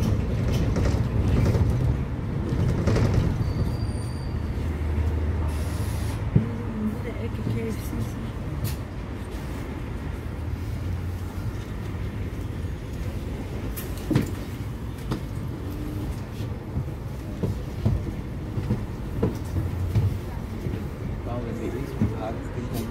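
Traffic passes along a busy street.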